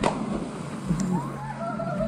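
Water splashes loudly as someone jumps into a pool.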